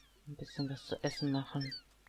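Chickens cluck softly.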